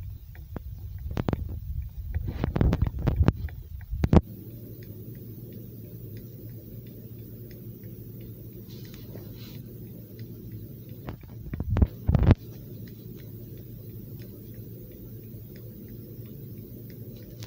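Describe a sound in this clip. Light footsteps patter steadily.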